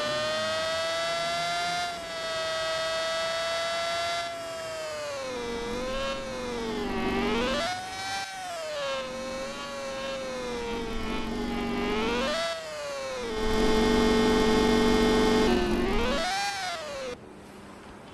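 A motorbike engine hums and revs up and down.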